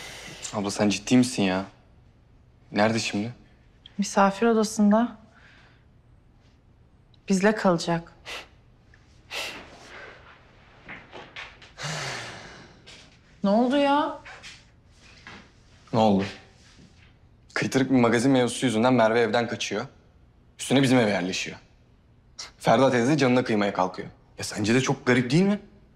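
A young man speaks emotionally, close by.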